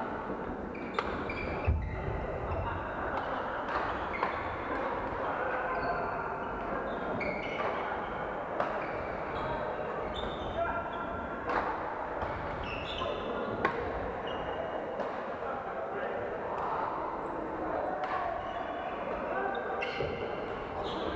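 Shuttlecocks are struck with sharp pops in a large echoing hall.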